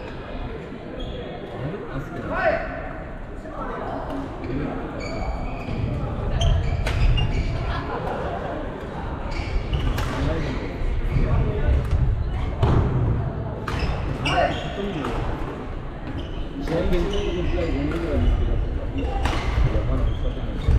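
Young players call out and chatter across an echoing hall.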